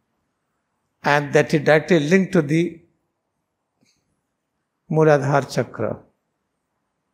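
A man speaks clearly into a microphone, explaining in a calm, lecturing tone.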